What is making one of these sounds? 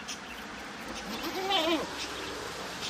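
A goat bleats a little farther off.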